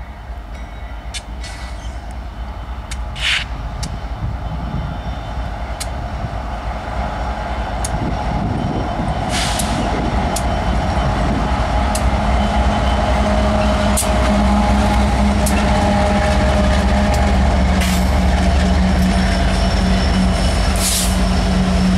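A diesel train approaches, its engines rumbling louder and louder.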